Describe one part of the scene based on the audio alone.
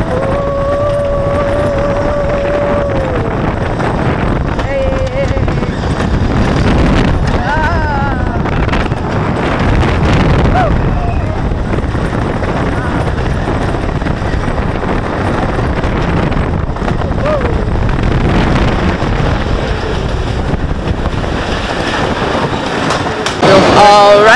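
A roller coaster rattles and roars along wooden tracks.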